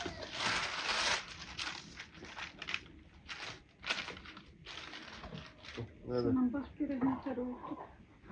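Dry food rustles and clatters on a wooden tray.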